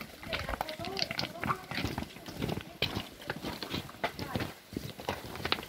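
Footsteps crunch on loose stones and gravel.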